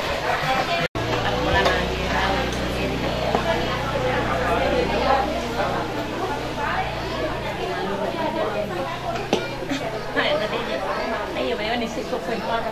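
A woman talks and laughs nearby.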